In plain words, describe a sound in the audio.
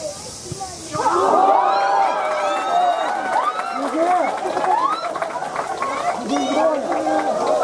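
A crowd of young voices cheers and shouts loudly outdoors.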